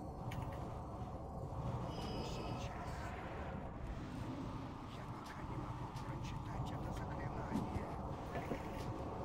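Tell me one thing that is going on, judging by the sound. Fiery spells whoosh and crackle in a fast battle.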